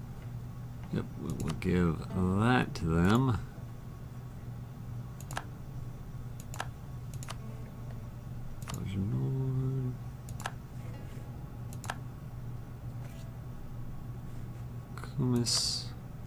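Short, soft clicks sound now and then as menus open and close.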